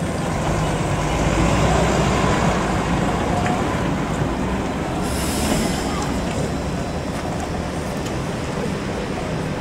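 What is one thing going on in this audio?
An articulated trolleybus drives past with an electric whine.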